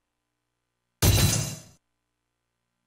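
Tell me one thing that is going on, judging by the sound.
A loud game sound effect bursts out and quickly fades.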